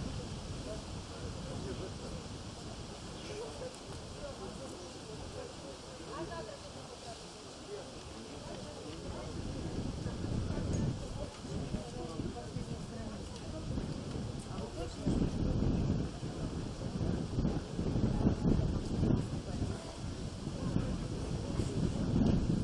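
An acoustic guitar is strummed and tuned, played through loudspeakers outdoors.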